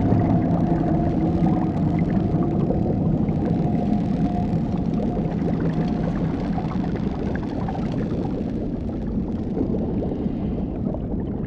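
Air bubbles rise and gurgle underwater.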